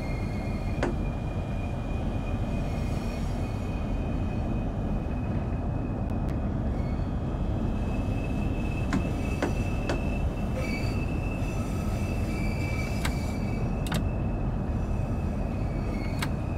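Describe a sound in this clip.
A train rumbles steadily along the rails.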